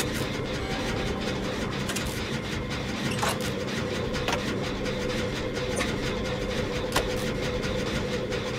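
A generator engine rattles and clanks steadily.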